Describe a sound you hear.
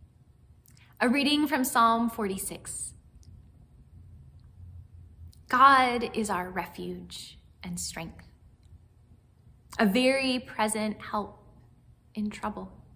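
A young woman speaks warmly and with animation, close to a microphone.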